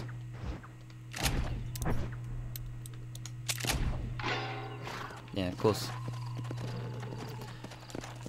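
A horse's hooves clop slowly on a rocky path.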